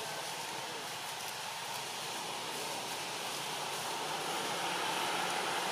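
Dry leaves rustle and crackle as a monkey handles them.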